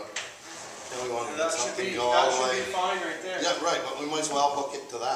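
A middle-aged man talks.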